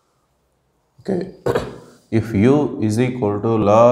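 A man speaks clearly and with animation, close by.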